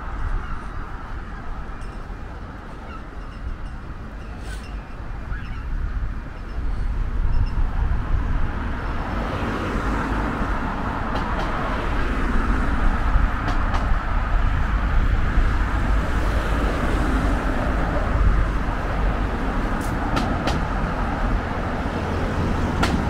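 Wind blows against a microphone outdoors.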